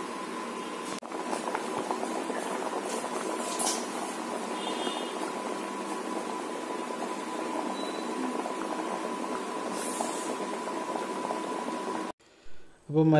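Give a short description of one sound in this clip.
Water bubbles and boils in a pot.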